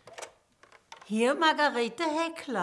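An elderly woman talks cheerfully into a telephone.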